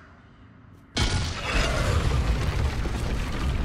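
A heavy stone piece grinds and rumbles as it slides across a stone floor.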